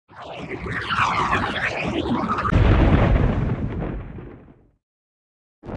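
A fireball whooshes past with a roaring rush.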